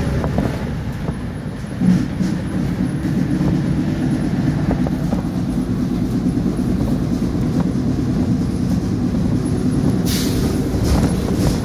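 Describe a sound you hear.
A car drives past outside.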